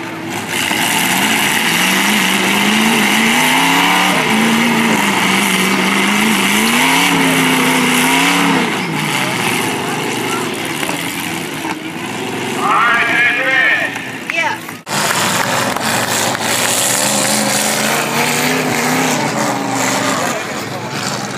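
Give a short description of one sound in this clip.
Car engines rev loudly, rising and falling.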